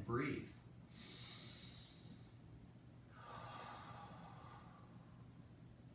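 A man breathes out slowly and audibly.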